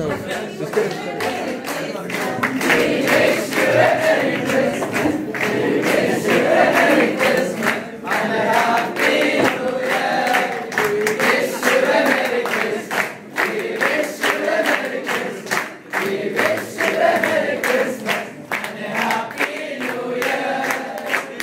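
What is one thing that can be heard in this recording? A group of young men clap their hands in rhythm.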